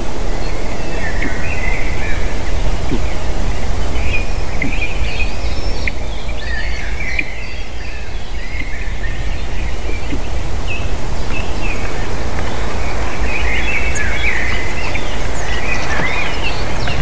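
A young bird chirps and peeps in short bursts close by.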